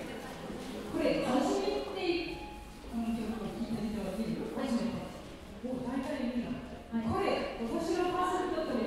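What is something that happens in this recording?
A piano plays along with the singing.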